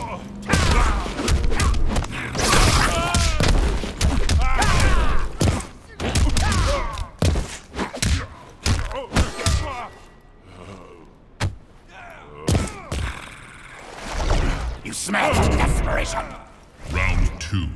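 Heavy punches and kicks land with loud thuds and cracks.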